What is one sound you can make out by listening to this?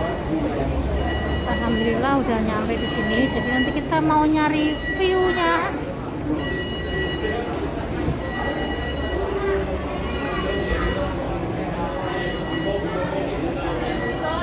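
Footsteps shuffle on a hard floor.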